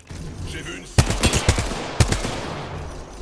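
Rapid gunshots fire in a burst.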